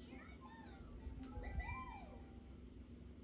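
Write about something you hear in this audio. Cheerful electronic game chimes play through a speaker.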